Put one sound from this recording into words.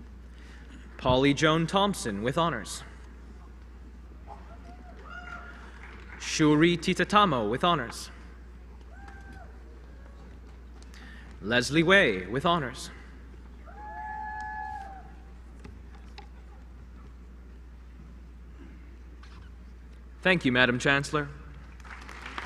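A man reads out names through a microphone in a large echoing hall.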